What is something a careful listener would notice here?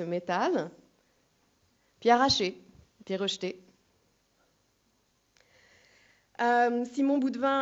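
A young woman speaks calmly into a microphone, in short phrases with pauses.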